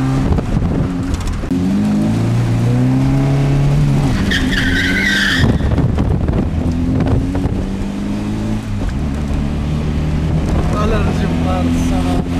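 A car engine hums and revs up and down while driving.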